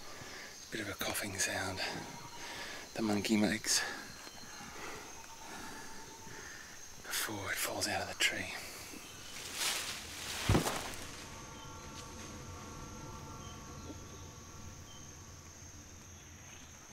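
Insects buzz steadily.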